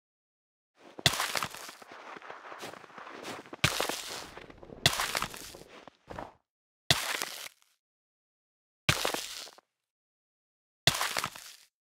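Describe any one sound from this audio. Blocks of snow are dug and broken with scraping thuds.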